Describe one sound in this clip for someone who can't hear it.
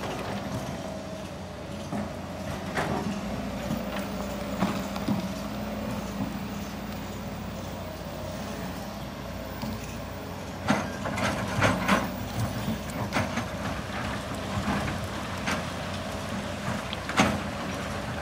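Excavator engines rumble steadily.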